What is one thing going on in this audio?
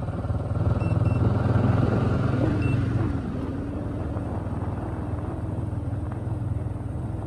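Tyres roll over a paved road.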